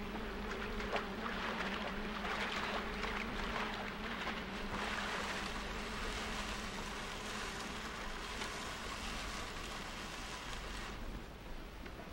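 A wooden crate scrapes and drags across the ground.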